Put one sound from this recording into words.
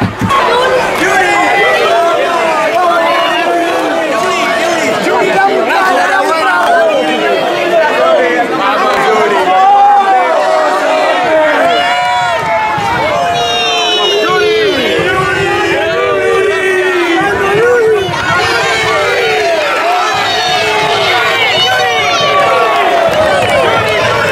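A large crowd of men and women cheers and chants loudly close by, outdoors.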